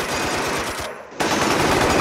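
Glass shatters under gunfire.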